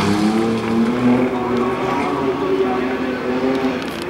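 A car crashes and rolls over on gravel.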